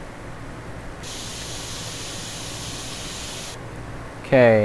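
A spray nozzle hisses steadily.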